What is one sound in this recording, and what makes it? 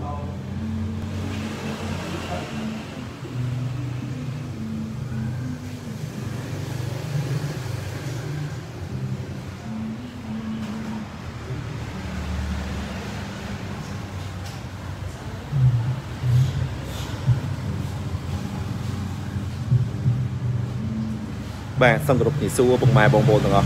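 Two car engines idle with a deep, throaty exhaust rumble.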